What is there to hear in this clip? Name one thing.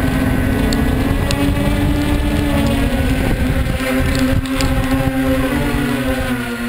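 Small wheels roll and crunch over dry leaves and gravel.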